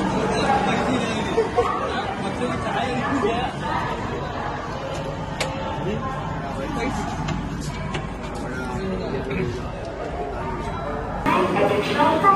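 Several men talk nearby in low voices.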